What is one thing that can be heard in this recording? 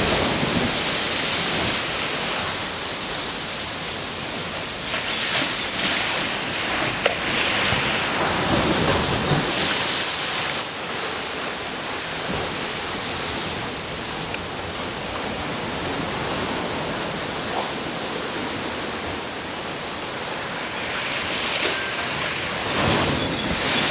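Wind rustles through palm fronds.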